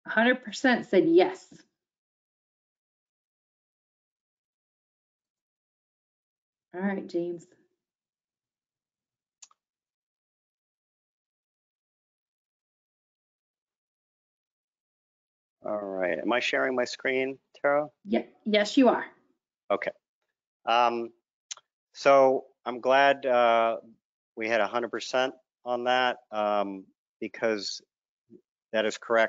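A middle-aged man speaks calmly through a microphone, as in an online call.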